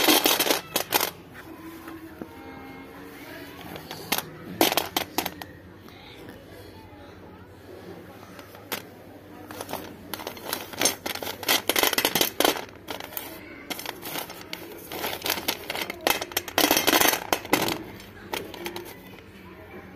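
Slate pencils clatter and clink in a steel plate.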